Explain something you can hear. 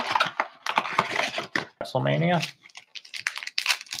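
A plastic wrapper crinkles in hands.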